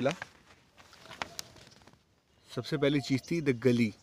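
A paper leaflet rustles as it is unfolded.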